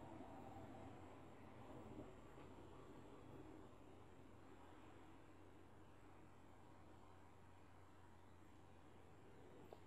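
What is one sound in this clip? Metal tweezers tick softly against a small metal part.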